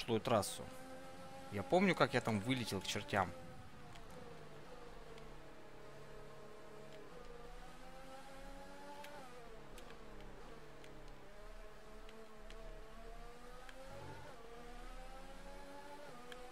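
A racing car engine whines, rising and falling in pitch as it speeds up and slows down through gear changes.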